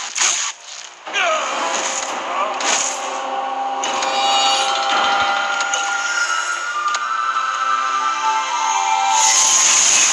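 Game music plays.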